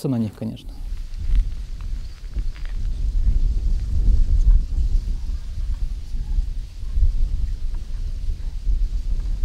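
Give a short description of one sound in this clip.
Wind rumbles and buffets.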